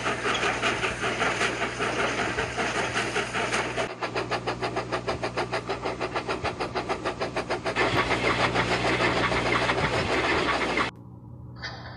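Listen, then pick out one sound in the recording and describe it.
A steam train chugs rapidly along the tracks.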